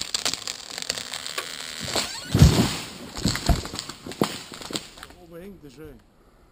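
Footsteps crunch through dry leaves on a forest floor.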